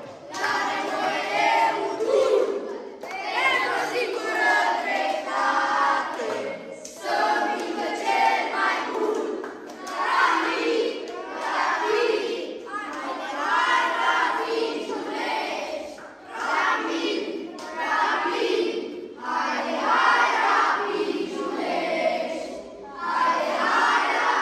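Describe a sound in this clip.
A group of children chants loudly together.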